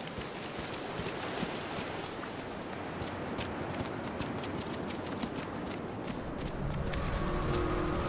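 Footsteps patter quickly over soft sand.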